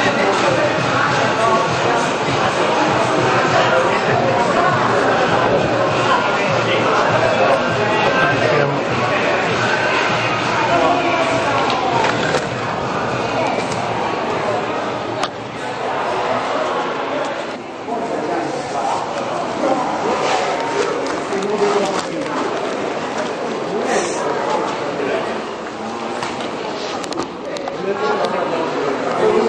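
A crowd of people chatters and murmurs in a large echoing hall.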